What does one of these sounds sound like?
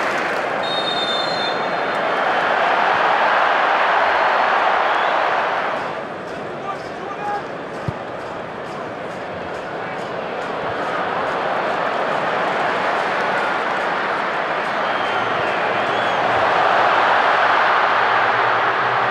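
A huge stadium crowd roars and cheers, rising and falling.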